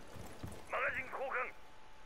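A gun rattles as it is reloaded.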